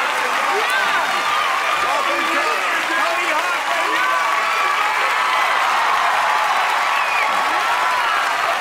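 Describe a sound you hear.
A large studio audience claps and cheers loudly.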